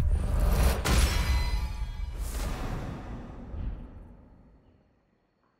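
A deep whooshing boom with a bright shimmer rings out and slowly fades.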